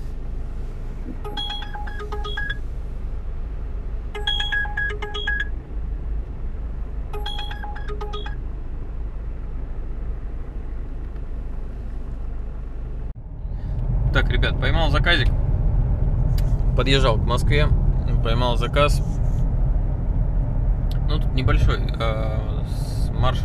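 A car engine hums low and steady from inside the car.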